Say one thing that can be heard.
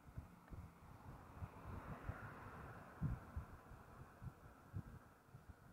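Wind rumbles and buffets against the microphone outdoors.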